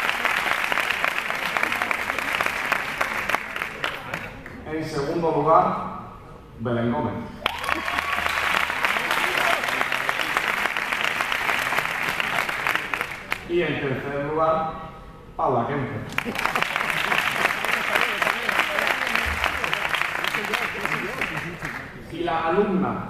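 Hands clap in applause in a large hall.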